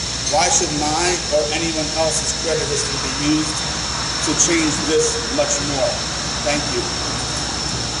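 A middle-aged man speaks firmly into a microphone outdoors.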